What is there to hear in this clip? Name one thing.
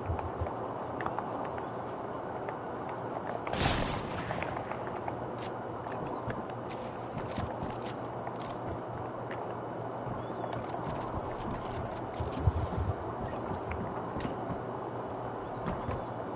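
Building pieces snap into place in a game with quick, sharp clicks.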